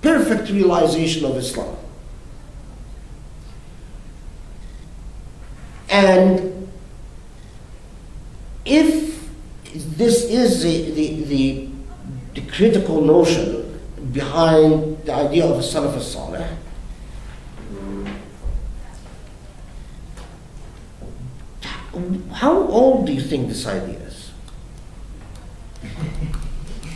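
A man speaks calmly nearby, with pauses.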